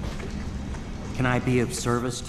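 A man asks a question in a low voice.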